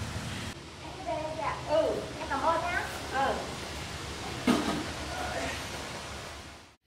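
A young woman talks cheerfully nearby.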